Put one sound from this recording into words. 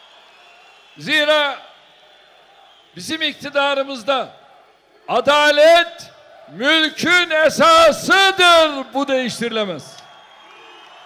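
An elderly man speaks forcefully through a loudspeaker outdoors, his voice echoing.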